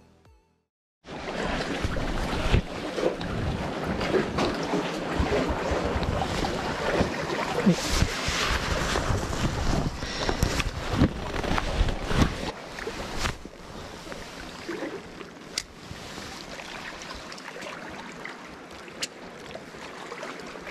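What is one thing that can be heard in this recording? Water laps against a rocky shore.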